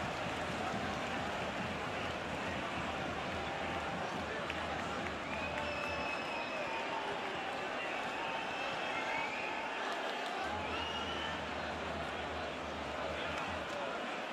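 A large crowd roars and chants steadily in a stadium.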